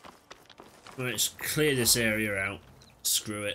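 A young man speaks with animation into a headset microphone.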